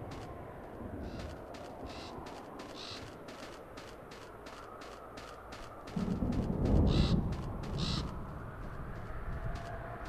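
Boots crunch on dry ground in quick, steady footsteps.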